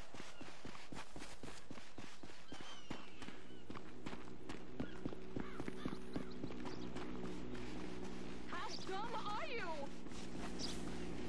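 Quick footsteps run over grass and dirt.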